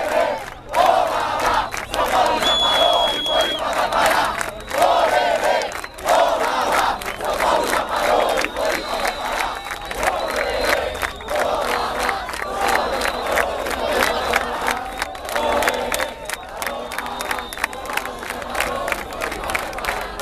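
A large crowd chants loudly in unison outdoors.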